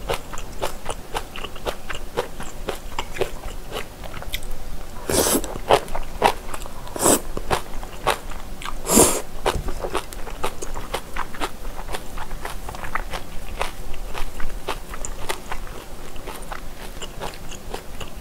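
A young woman chews and smacks her lips wetly, close to the microphone.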